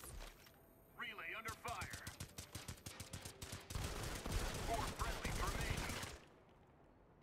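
Automatic rifle fire rattles in a video game.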